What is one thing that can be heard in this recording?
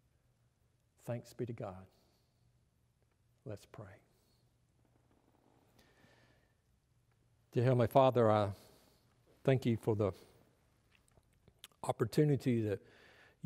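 An older man speaks calmly through a microphone, in a reverberant hall.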